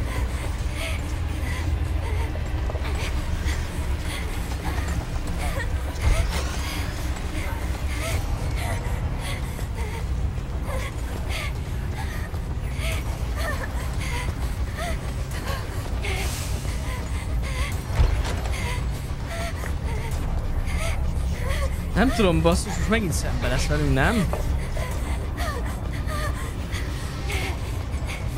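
Footsteps tread steadily along a hard floor.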